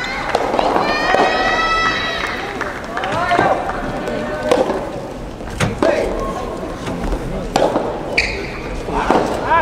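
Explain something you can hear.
Rackets strike a rubber soft tennis ball in a large echoing hall.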